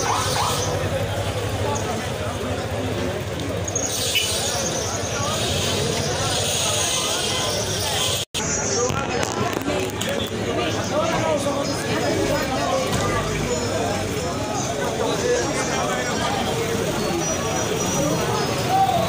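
A large crowd of men and women chant and shout outdoors.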